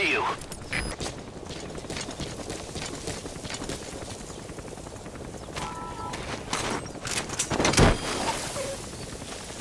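Footsteps crunch on dry gravel.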